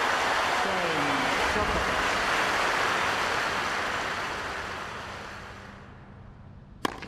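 A crowd applauds loudly, then the applause fades away.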